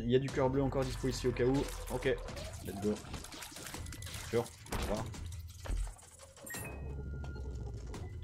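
Cartoonish shooting and splattering sound effects pop in quick succession.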